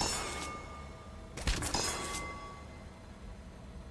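A metal lever clanks as it is pulled.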